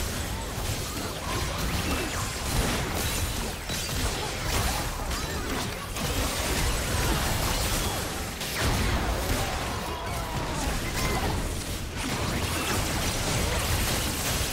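Video game combat sounds of spells blasting and weapons clashing play continuously.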